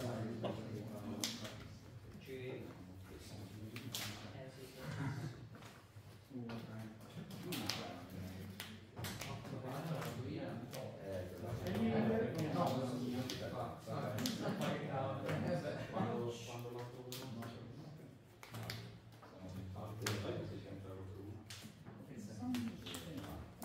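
Cards riffle and flick in hand as a deck is shuffled.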